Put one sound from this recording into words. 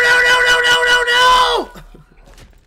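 A young man screams loudly and shrilly into a microphone.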